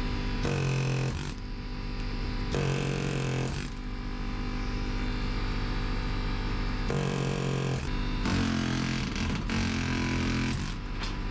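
An air hammer rattles loudly against metal in short bursts.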